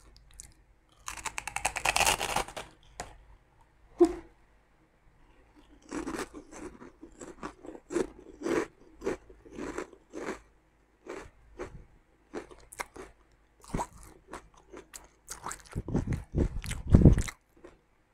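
Crunchy chips crackle loudly as a young woman chews close by.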